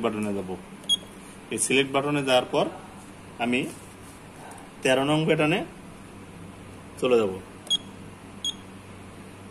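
A control panel beeps briefly as its buttons are pressed.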